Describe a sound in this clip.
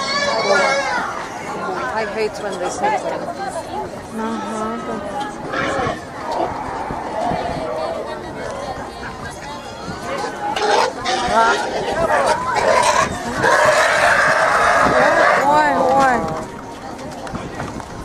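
A crowd of men and women chatter outdoors nearby.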